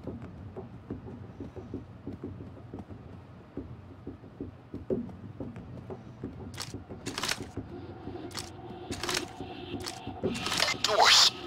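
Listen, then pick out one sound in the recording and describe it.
Footsteps tread steadily on a hard floor.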